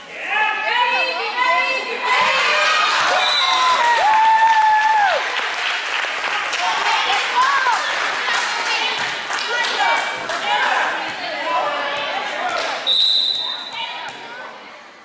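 A crowd of young people cheers and shouts in a large echoing gym.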